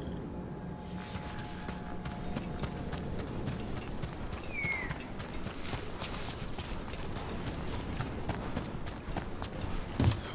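Footsteps crunch steadily over dry leaves and forest ground.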